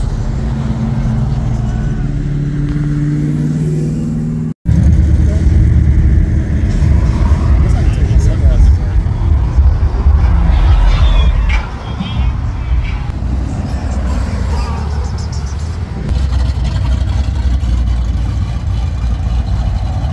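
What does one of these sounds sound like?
Car engines rumble deeply as cars cruise slowly past.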